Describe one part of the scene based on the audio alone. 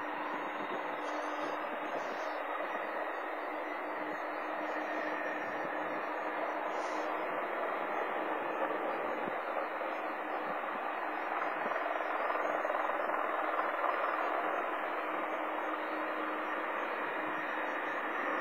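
A jet engine roars in the distance as an airliner takes off, growing slightly louder.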